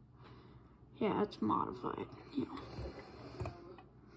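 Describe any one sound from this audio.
A small toy car rolls and rattles across a wooden table.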